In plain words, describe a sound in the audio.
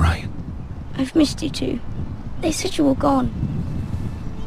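A boy speaks tearfully, close by.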